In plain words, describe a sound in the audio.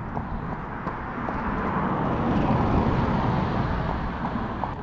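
A car approaches and passes close by.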